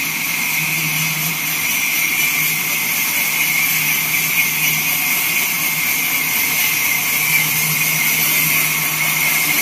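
A band saw whines steadily as it cuts through wood.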